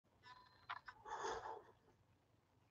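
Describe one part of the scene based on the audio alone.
A man slurps a hot drink.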